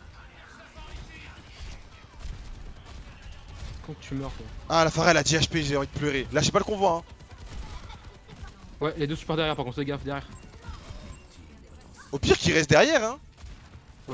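Gunfire from a game rattles in quick bursts.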